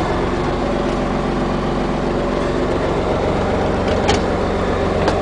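The six-cylinder diesel engine of a school bus idles, heard from the driver's seat.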